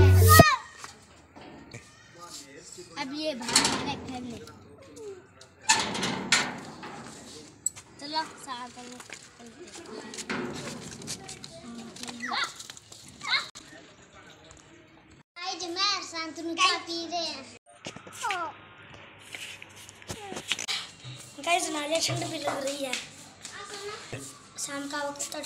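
Children's voices chatter and call out nearby.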